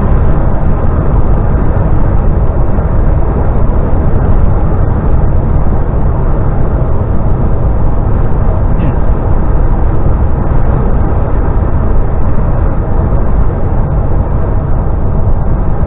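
A vehicle engine rumbles steadily while driving at speed.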